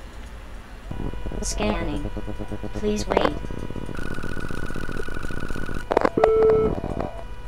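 Electronic scanning tones beep and whir.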